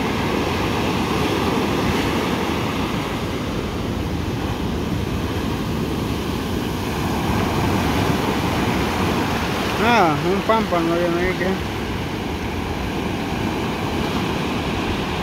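Waves crash and break steadily onto the shore.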